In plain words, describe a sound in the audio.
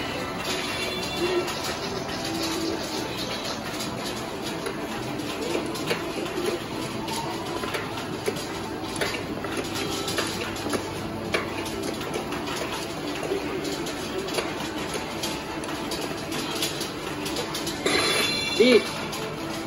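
Arcade machines play electronic music and game sounds.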